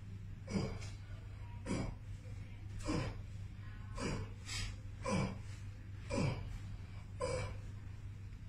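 Hands press on a person's back with soft, regular thumps.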